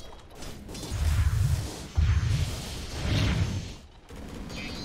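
Magic blasts boom and crackle during a fight.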